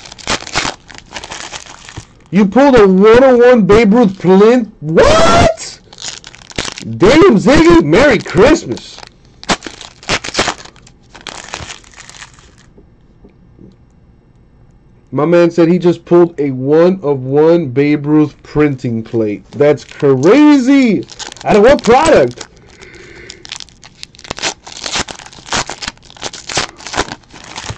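A plastic wrapper crinkles and rustles in hands.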